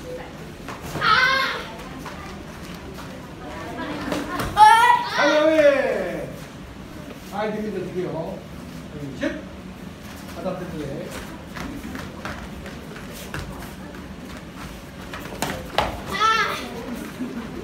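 A young boy shouts a sharp karate kiai.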